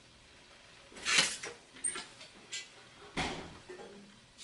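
Objects clatter on a carpeted floor.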